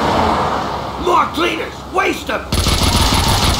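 A man speaks in a low, gruff voice.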